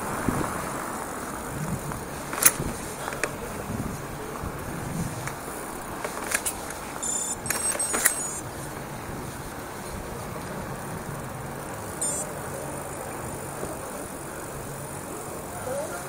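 Wind buffets steadily past a moving rider.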